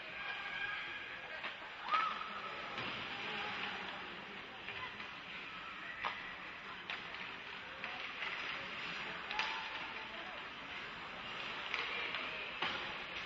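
Spectators murmur and cheer in a large echoing arena.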